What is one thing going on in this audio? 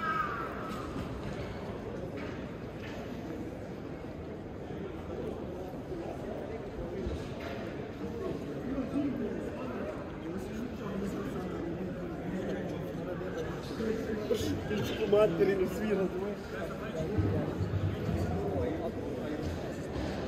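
Voices of passers-by murmur and chatter in the open air.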